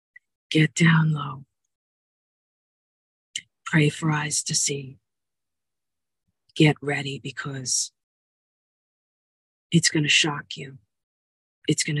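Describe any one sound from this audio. A middle-aged woman speaks calmly and slowly close by, with long pauses.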